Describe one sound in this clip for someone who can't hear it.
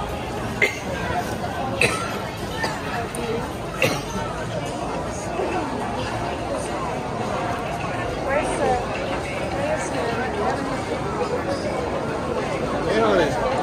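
A crowd of people chatter all around.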